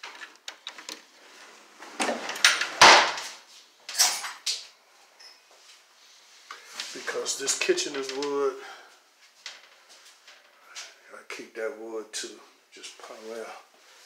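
A wooden sliding door rumbles and knocks along its track.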